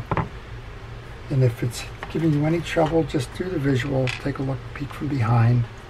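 Small metal parts click and tap on a wooden board.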